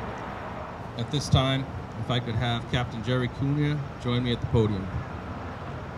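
A man speaks into a microphone, heard outdoors through a loudspeaker.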